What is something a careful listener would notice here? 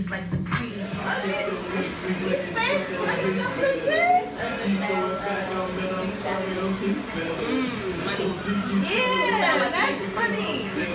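A young woman talks and laughs loudly with animation close by.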